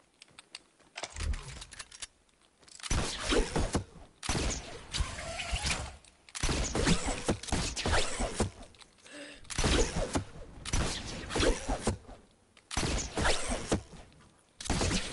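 Wooden building pieces clunk into place in quick succession.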